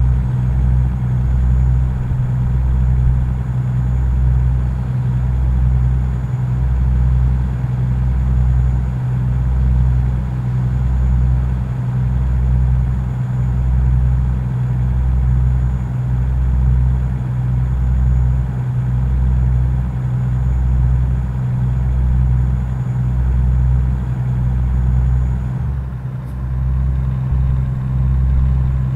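A truck engine drones steadily with a low, pulsing rumble.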